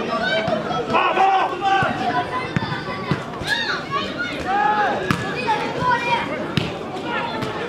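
Young men shout to each other across an open field.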